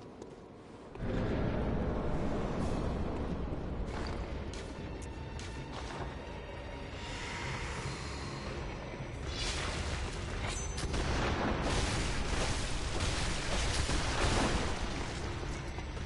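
Heavy metal blows clash and thud in a fight.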